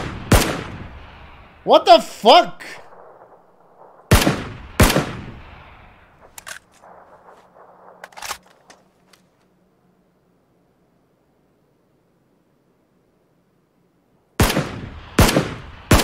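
Loud rifle shots crack and echo outdoors.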